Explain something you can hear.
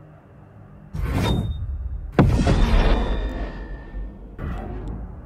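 A loud swelling upgrade swoosh rings out in a game.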